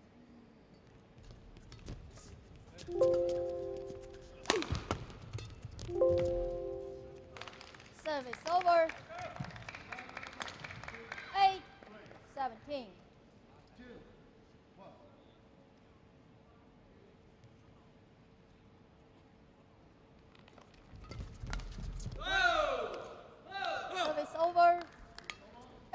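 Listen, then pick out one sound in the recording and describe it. Rackets strike a shuttlecock in a quick rally, in a large echoing hall.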